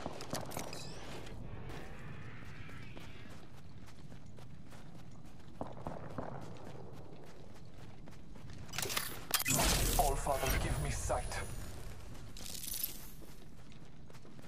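Footsteps run across the ground.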